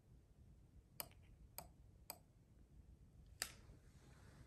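A metal tool clicks lightly against a candle jar.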